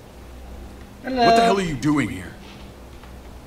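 A man asks a question in a tense, rough voice.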